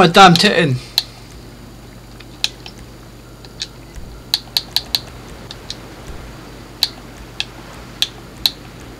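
Menu clicks tick quietly, one at a time.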